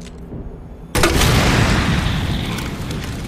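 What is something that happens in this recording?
A loud blast booms and echoes.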